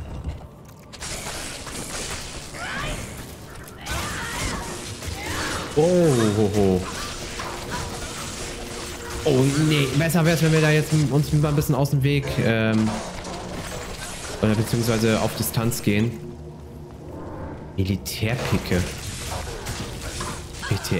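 Game spells crackle and explode with bursts of electric noise.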